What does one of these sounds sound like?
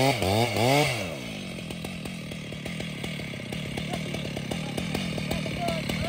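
A chainsaw idles with a low sputtering rumble.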